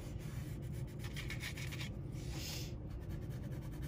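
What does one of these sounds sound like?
A pencil scratches across paper in quick strokes.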